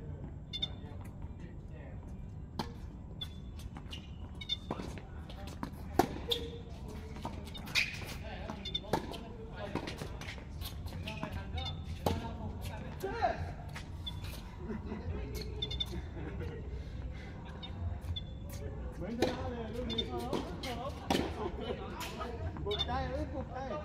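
Tennis rackets strike a ball with sharp pops, back and forth.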